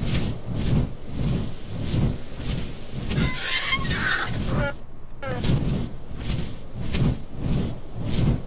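Large wings flap in steady, heavy beats.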